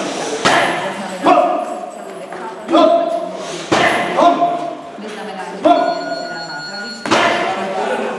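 Shin kicks smack into leather kick pads in an echoing hall.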